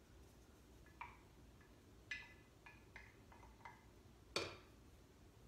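A spoon clinks against a cup.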